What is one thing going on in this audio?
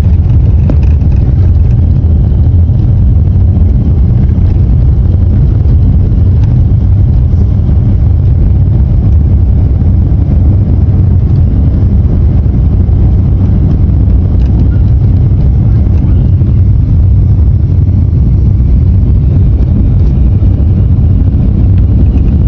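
A car engine rumbles steadily while driving along a road.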